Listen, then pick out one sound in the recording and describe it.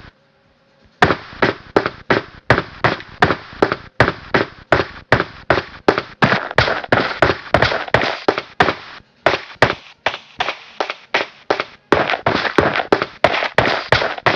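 Footsteps run quickly over wooden floors and stairs.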